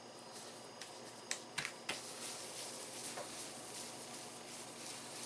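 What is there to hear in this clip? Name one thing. Hands pat and press soft dough on a table with light taps.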